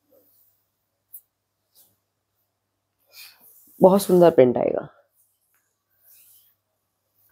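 Fabric rustles softly as it is handled.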